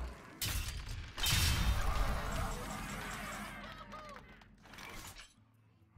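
A short fanfare chimes to announce a new turn.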